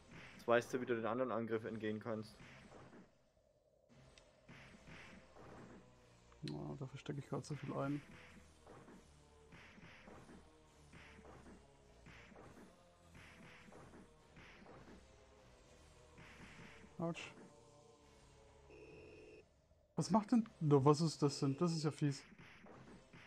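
Punches and kicks land with sharp retro game thuds.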